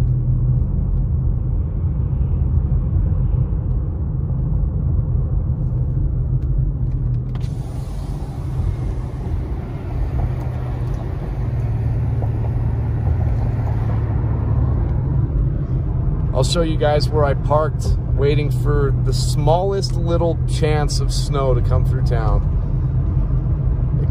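A car engine hums with a low, steady road rumble.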